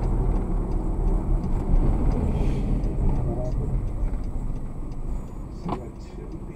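Tyres rumble on the road as a car drives and slows to a stop.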